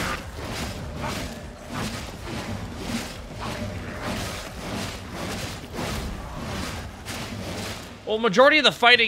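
Heavy blows thud and slash repeatedly in a fight.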